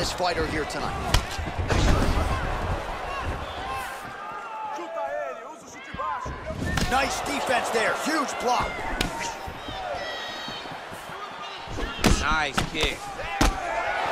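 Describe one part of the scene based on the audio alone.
A crowd cheers and roars loudly throughout.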